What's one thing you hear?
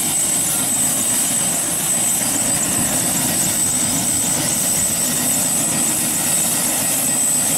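A helicopter's rotor blades thump rapidly.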